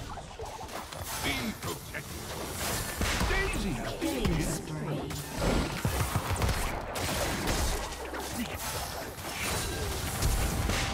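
Magic spells whoosh and crackle in a fast video game battle.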